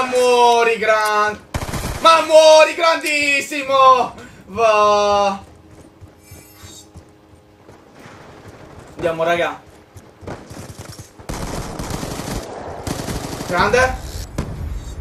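A young man shouts and sings loudly and excitedly into a microphone.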